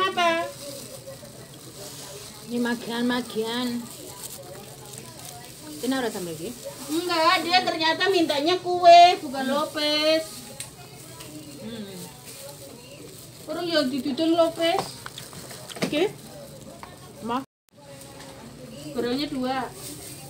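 Plastic gloves and paper rustle as food is handled.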